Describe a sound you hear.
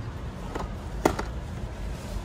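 A small cardboard box drops into a plastic shopping basket.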